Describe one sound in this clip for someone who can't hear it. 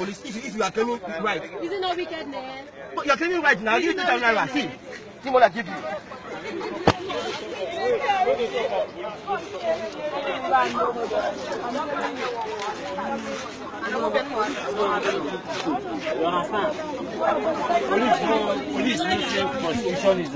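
Several men and women talk loudly and over one another close by.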